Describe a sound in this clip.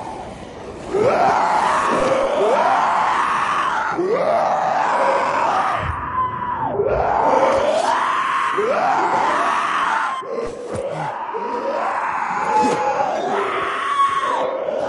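Zombies groan and snarl nearby.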